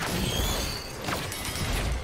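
Sharp magical zaps crackle.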